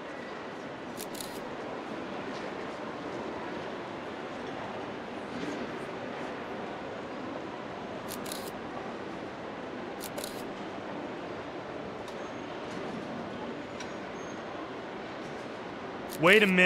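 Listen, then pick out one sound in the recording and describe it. Distant chatter murmurs steadily in a large echoing hall.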